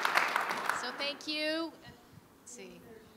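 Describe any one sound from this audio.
A woman speaks brightly through a microphone.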